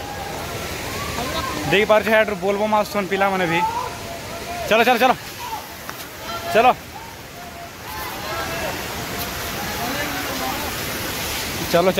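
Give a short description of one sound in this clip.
Water rushes over rocks in a steady flow.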